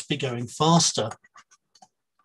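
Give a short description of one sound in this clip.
A man speaks calmly into a microphone over an online call.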